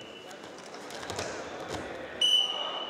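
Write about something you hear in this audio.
Two wrestlers thud onto a mat.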